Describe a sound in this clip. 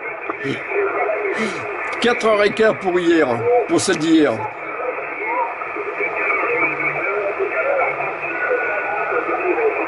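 Radio static hisses steadily.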